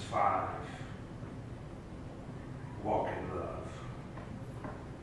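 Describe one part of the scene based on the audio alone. A man speaks slowly and solemnly through a microphone in a reverberant hall.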